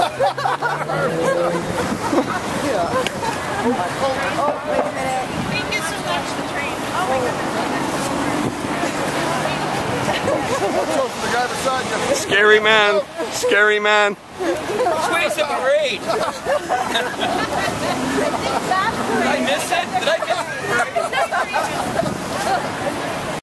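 A crowd of men and women chatter and shout outdoors.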